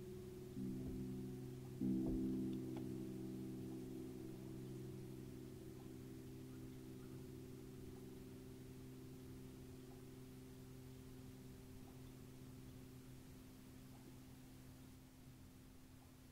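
A piano plays soft low chords that ring out and slowly fade.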